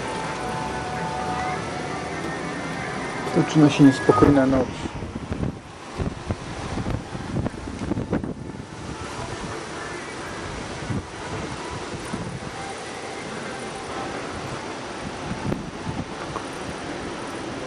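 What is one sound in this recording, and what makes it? Wind gusts and rushes through trees outdoors.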